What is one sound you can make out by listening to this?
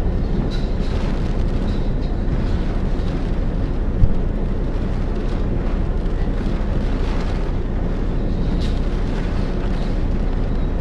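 Rain pours down.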